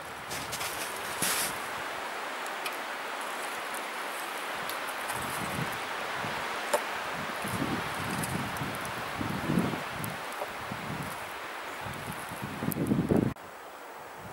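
Water pours into a wooden cup.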